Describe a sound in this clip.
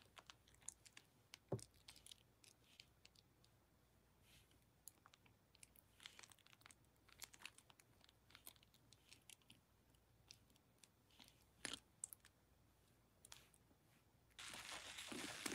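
Soap foam crackles and pops softly.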